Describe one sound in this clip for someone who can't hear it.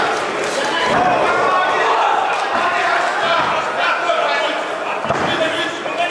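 Bodies thud heavily onto a padded floor.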